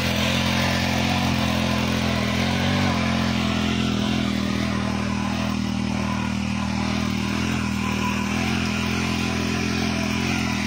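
Tiller tines scrape and churn the dry soil.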